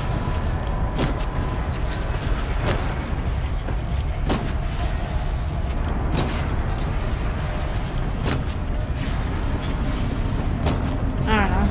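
Arrows whoosh and thud as a bow is fired again and again.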